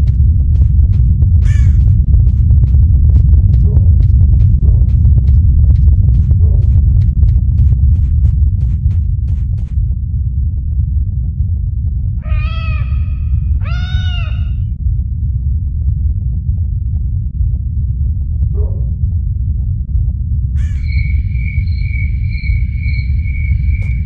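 Wind rumbles low and steady outdoors.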